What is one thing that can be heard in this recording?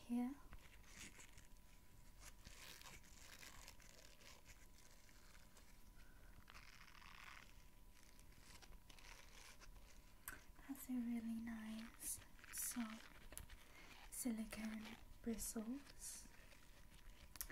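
Fingernails tap and scratch on a rubbery brush right up close.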